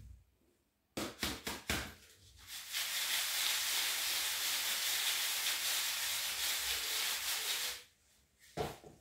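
Dry pasta rattles and shakes in a sieve.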